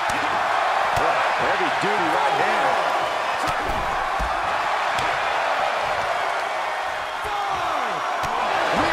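Blows land with sharp thuds.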